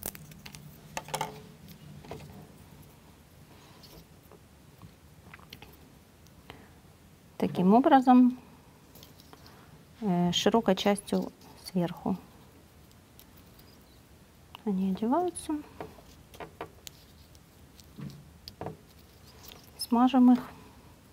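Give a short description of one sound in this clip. Small wooden parts click and tap together.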